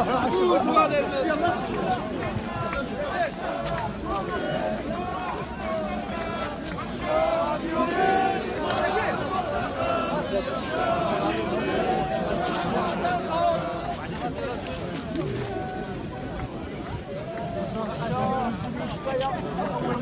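A crowd murmurs and talks close by.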